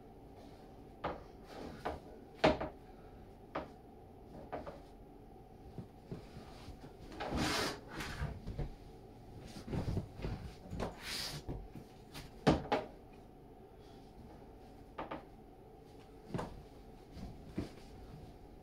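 A wooden board knocks and thumps against a bed frame.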